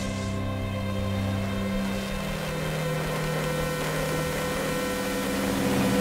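Soft music plays from a radio.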